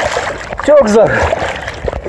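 Water splashes loudly close by.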